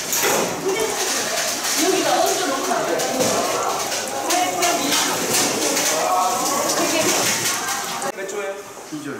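Water runs from a tap.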